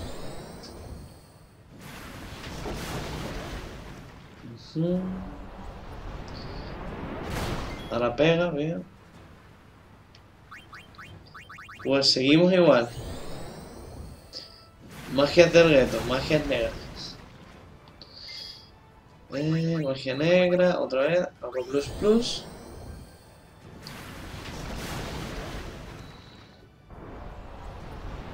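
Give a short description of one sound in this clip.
Game blasts and whooshes roar in bursts.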